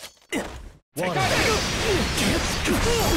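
A sword slashes with a sharp swish.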